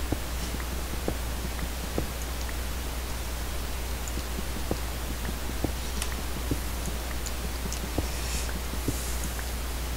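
Stone blocks crack and break with short knocks.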